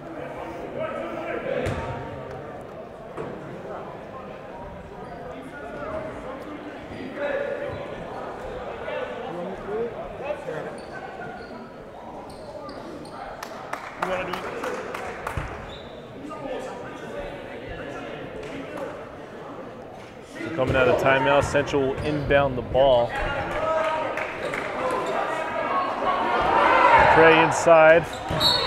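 A crowd of men and boys chatter and call out in a large echoing hall.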